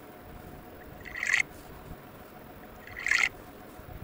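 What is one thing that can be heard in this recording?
A game's liquid pouring sound effect plays twice.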